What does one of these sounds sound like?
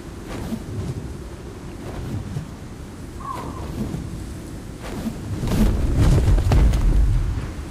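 Large wings beat with heavy whooshing flaps.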